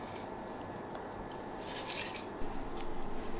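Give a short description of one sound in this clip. Salt grains patter into a metal pot.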